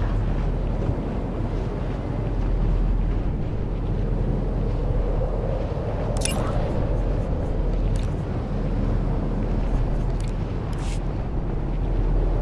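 A hovering vehicle's engine hums low and steady.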